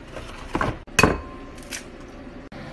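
An egg cracks against a glass bowl.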